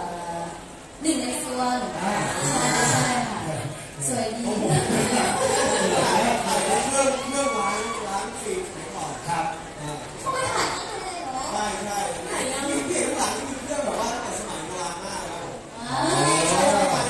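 A young woman talks with animation through a microphone over loudspeakers.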